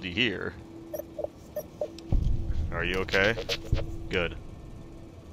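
A small robot beeps and warbles electronically.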